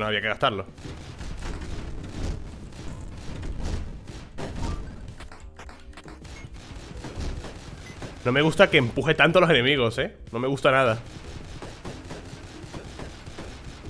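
Small gunshots pop rapidly in a video game.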